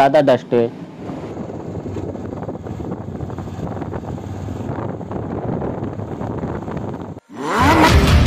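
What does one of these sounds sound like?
A motorcycle engine runs steadily.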